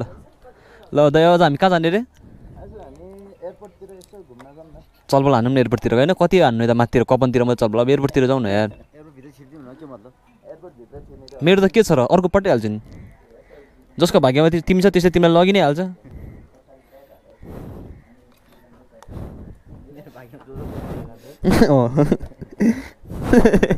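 A man talks animatedly, close by.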